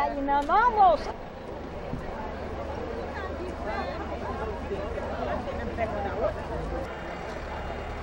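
A crowd of women chatter in the background.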